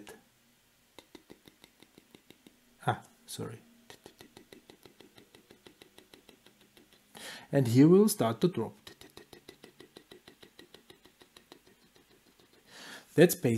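A pen scratches across paper in short strokes.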